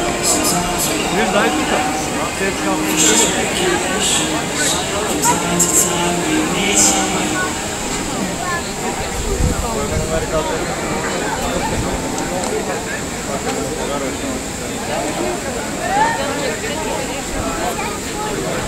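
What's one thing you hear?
A crowd chatters and murmurs outdoors.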